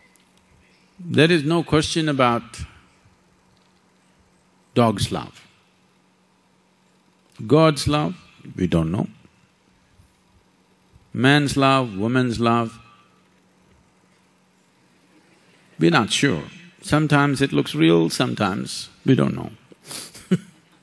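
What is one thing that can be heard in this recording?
An elderly man speaks calmly and deliberately into a microphone, with long pauses.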